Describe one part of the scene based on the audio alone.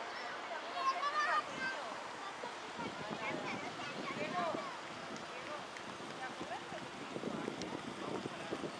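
Young children call out excitedly nearby.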